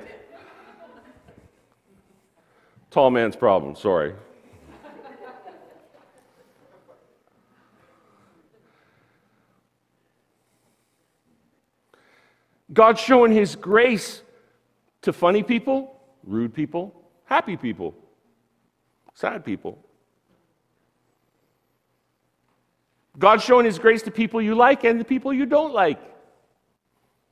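A middle-aged man speaks with animation through a microphone in an echoing hall, with long pauses.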